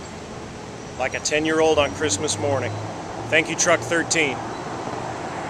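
A middle-aged man speaks close to the microphone.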